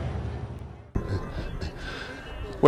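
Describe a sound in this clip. A man speaks into a microphone outdoors.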